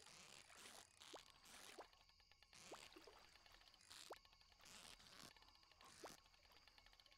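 Short rising chirps sound from a fishing game, over and over.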